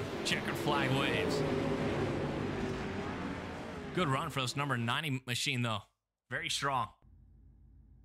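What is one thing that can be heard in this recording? Race car engines roar loudly and rev up and down.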